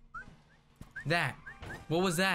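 A young man speaks loudly and with animation close to a microphone.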